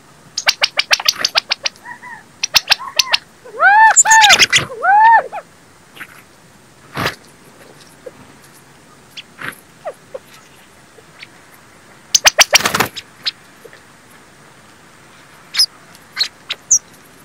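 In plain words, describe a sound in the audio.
Small birds chirp and call close by.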